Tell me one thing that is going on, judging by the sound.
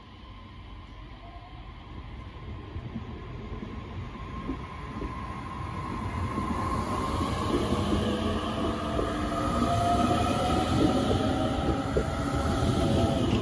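An electric train's motors whine, rising in pitch as the train pulls away.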